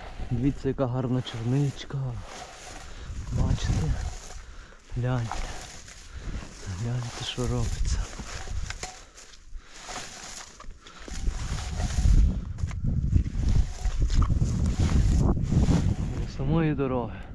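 A hand-held berry rake rustles and scrapes through low shrubs.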